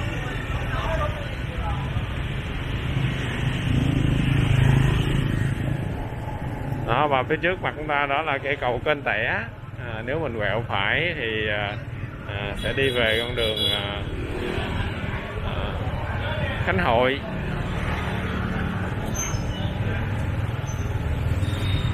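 Motorbike engines hum and rumble along a busy street.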